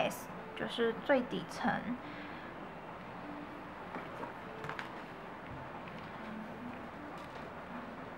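A small plastic bottle cap clicks and twists open.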